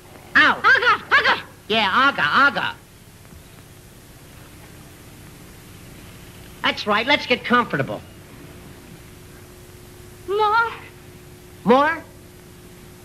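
A young woman speaks with emotion, heard through an old, hissy recording.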